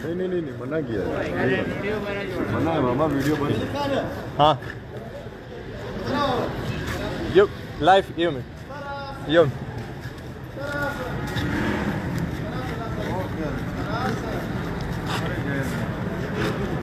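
Several men talk and shout excitedly close by.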